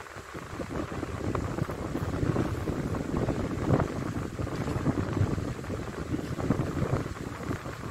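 A marker squeaks softly as it draws on paper.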